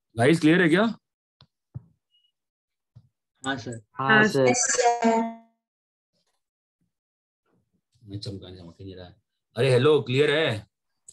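A man explains in short phrases, as in a lecture, heard through a microphone.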